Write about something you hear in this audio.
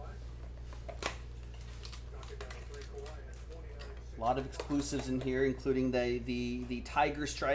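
Cardboard and foil wrappers rustle and crinkle as a box is opened.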